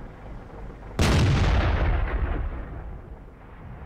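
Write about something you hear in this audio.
A tank cannon fires with a loud boom that rumbles away.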